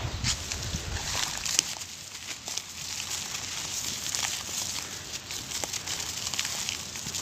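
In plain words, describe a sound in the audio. Hands scoop and scrape wet gritty sand.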